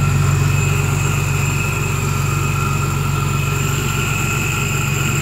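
A supercharger whines steadily at a high pitch.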